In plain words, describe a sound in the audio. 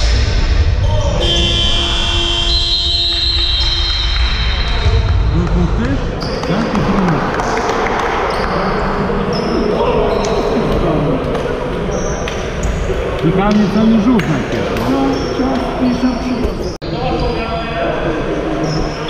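Men call out to each other in a large echoing hall.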